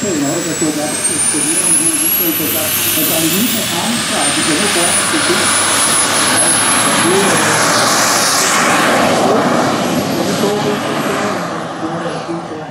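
A model jet engine whines at a high pitch, rising steadily as it spools up.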